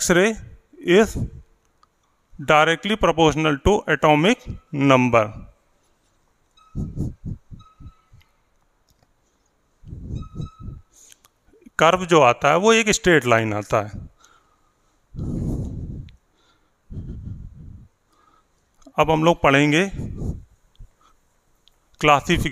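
A man speaks calmly through a close microphone, in short bursts with pauses.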